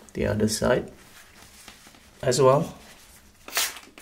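A paper towel rubs against a smooth surface.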